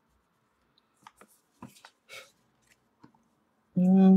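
A sheet of paper rustles as it slides across a table.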